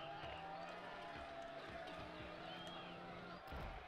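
A ball thuds as it bounces.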